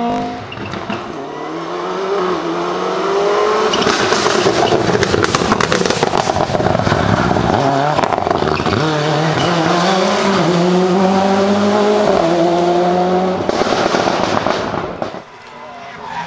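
A rally car engine roars at high revs, rising and falling through the gears.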